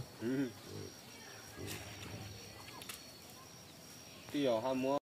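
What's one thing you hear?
A pig grunts loudly.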